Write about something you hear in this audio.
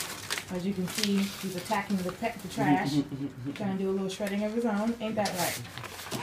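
A dog rustles through papers on the floor.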